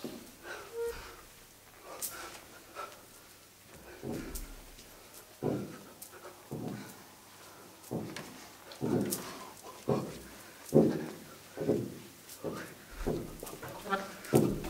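A tuba plays short, low, punchy notes.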